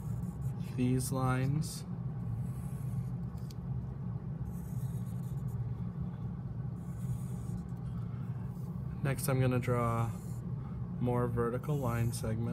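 A felt-tip marker squeaks across paper.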